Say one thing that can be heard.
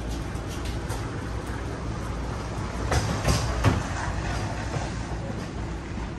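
A loaded plastic utility cart rolls over concrete.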